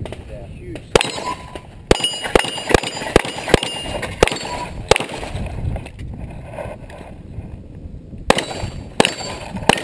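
A pistol fires a rapid string of sharp shots outdoors.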